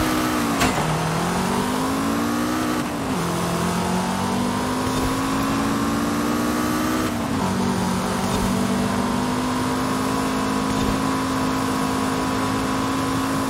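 A car engine revs hard, dropping in pitch at each gear change and climbing again.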